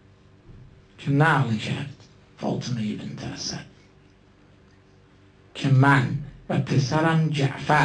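A man speaks into a microphone with emotion, in pauses.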